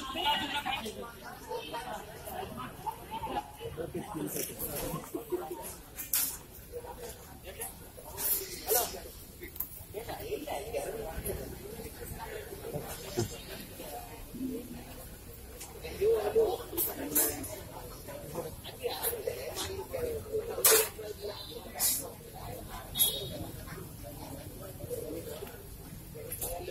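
A crowd of men and women talk and shout outdoors.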